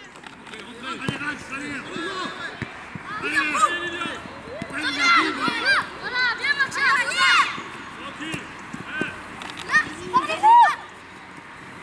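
Children shout and call out across an outdoor football pitch.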